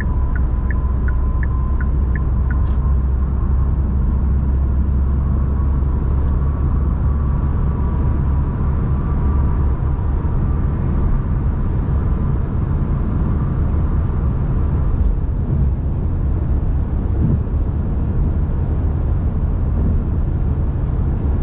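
A car's engine and tyres rumble steadily inside the car on a highway.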